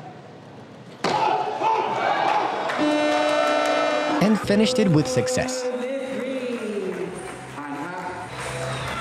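A crowd cheers loudly in a large hall.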